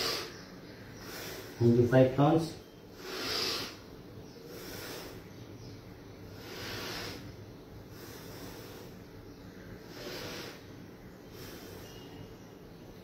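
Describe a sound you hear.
A man breathes out heavily in slow, regular breaths.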